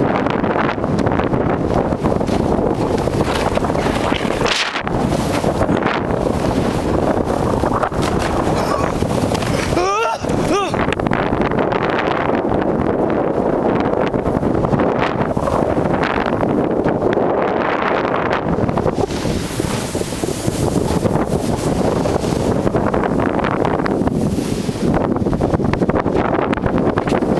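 A snowboard scrapes and hisses over snow.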